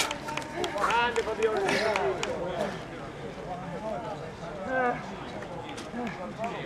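Men talk nearby outdoors with animation.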